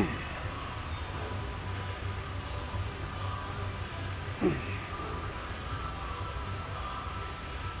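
A weight machine clanks as a man works out on it.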